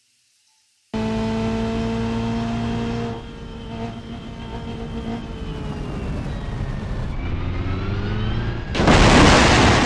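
A car engine revs loudly at high speed.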